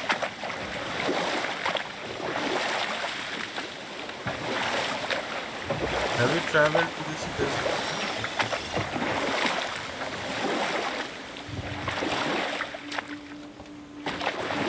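Oars splash and swish through water in steady strokes.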